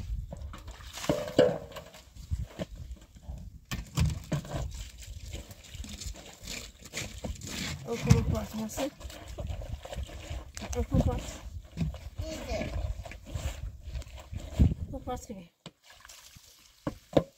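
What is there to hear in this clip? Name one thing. Wet sand scrapes against a metal basin.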